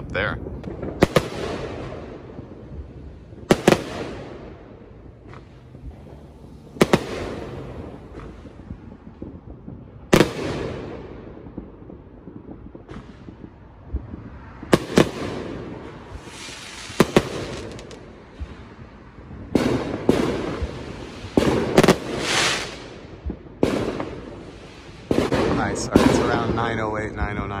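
Fireworks bang and boom nearby, echoing off the surroundings.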